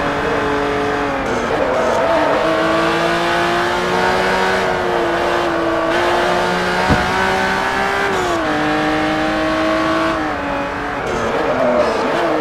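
A racing car engine roars steadily, dropping in pitch with each gear change and rising again.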